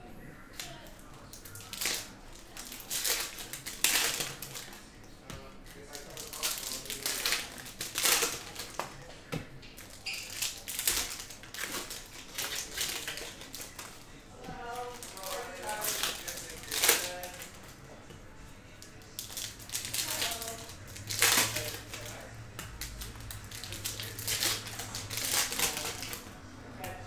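Trading cards shuffle and slap against each other.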